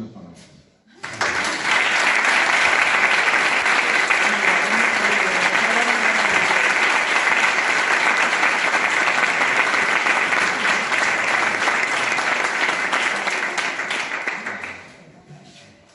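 An audience applauds loudly.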